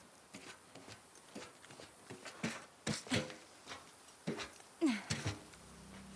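Boots clank on a metal ladder rung by rung.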